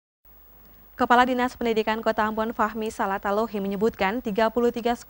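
A young woman reads out clearly into a microphone.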